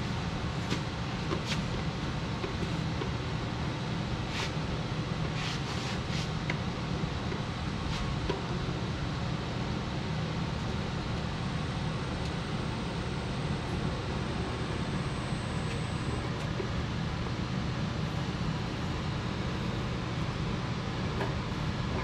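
An electric machine motor hums steadily.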